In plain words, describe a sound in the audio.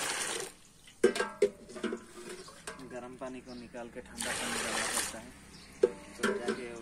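A metal mug clanks against a pot.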